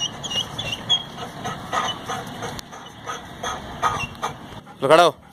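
A dog's paws tap and clatter on a metal ladder.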